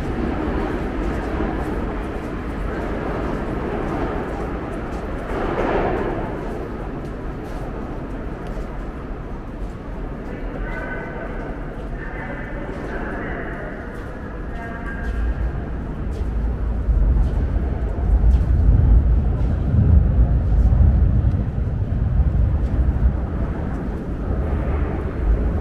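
A crowd murmurs and footsteps echo through a large, echoing underground hall.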